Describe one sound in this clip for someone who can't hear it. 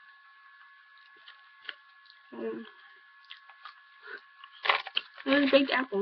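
A young woman crunches on a crisp snack.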